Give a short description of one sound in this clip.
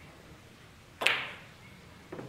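A cue strikes a pool ball with a sharp click.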